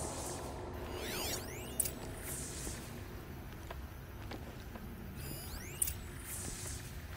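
A bright electronic shimmer sweeps up and down as a scanner switches on.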